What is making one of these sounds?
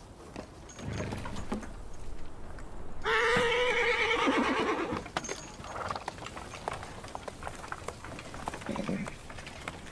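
A horse's hooves clop slowly on a dirt path.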